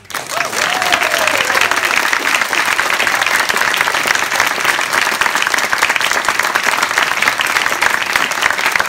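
An audience applauds loudly in a large hall.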